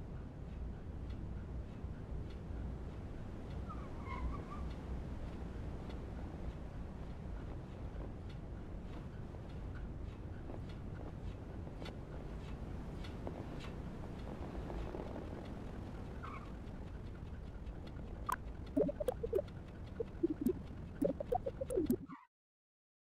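A small rover's electric motors hum steadily as it rolls over rough ground.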